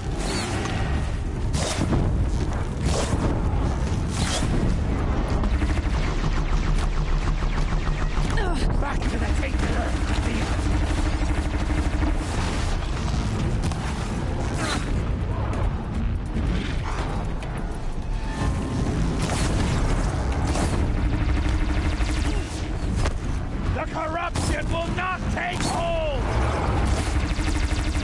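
Bowstrings twang as arrows fly.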